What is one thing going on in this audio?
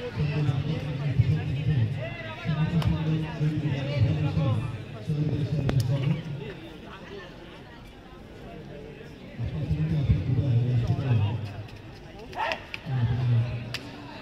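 A crowd chatters and calls out outdoors.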